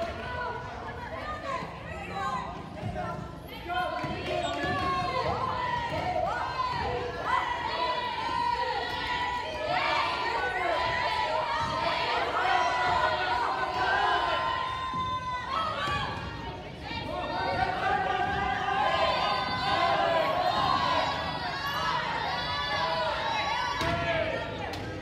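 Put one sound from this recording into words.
Players call out to each other across a large echoing gym.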